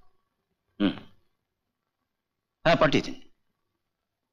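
A middle-aged man speaks briefly and firmly on a phone.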